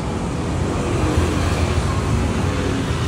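A motorbike engine hums as it passes by on the street.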